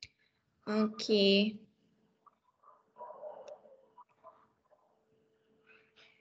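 A child speaks through an online call.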